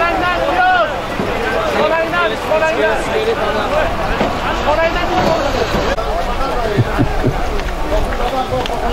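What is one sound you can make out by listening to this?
A crowd of men shouts and calls out outdoors.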